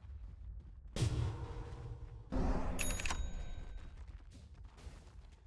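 Magic spell effects whoosh and crackle loudly in bursts.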